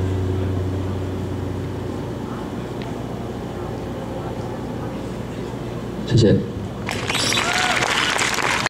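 A man strums an acoustic guitar through loudspeakers.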